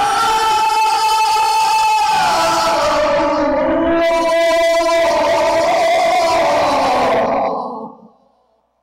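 A man chants in a long, melodic voice through a microphone in an echoing hall, then falls silent.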